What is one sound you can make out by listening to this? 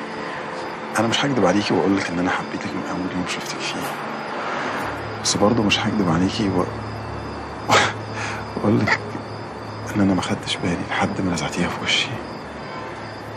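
A man speaks softly up close.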